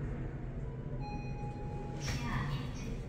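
An elevator chime rings once.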